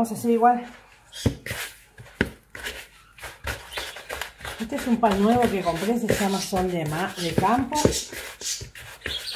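Hands rub and squeeze crumbly dough in a plastic bowl, with soft scraping and rustling.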